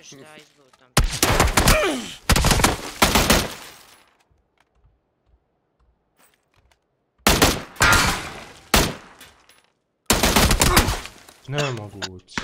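Rapid rifle gunfire bursts out loudly in several volleys.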